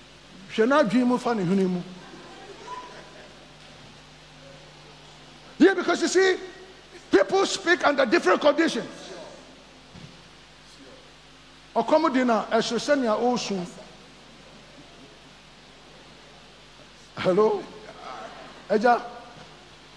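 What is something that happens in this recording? A middle-aged man preaches with animation through a headset microphone, in bursts with pauses.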